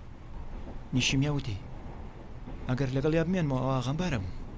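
A teenage girl speaks softly.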